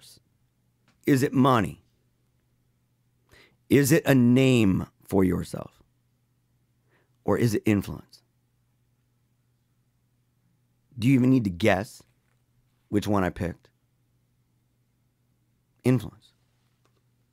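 A man speaks slowly and thoughtfully into a close microphone, with long pauses.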